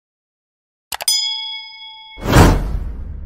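A small bell chimes and rings out.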